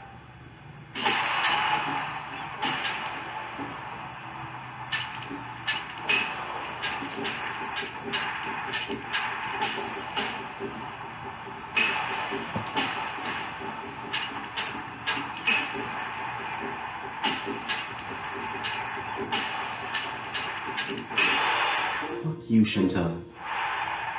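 A crowd cheers loudly through a television speaker.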